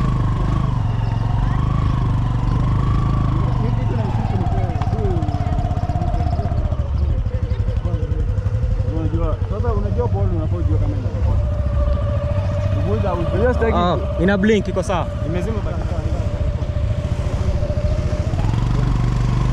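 A motorcycle engine drones steadily, its pitch rising and falling.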